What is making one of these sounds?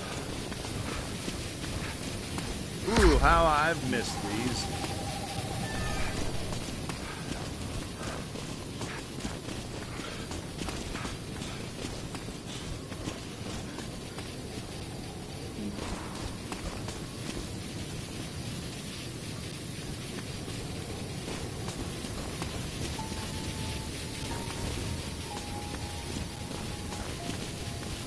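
Footsteps tread on the ground outdoors.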